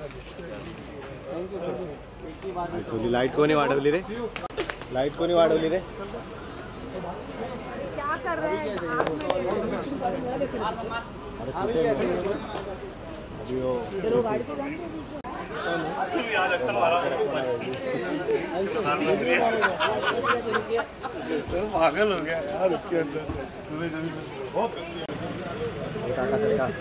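Several men talk and greet each other nearby.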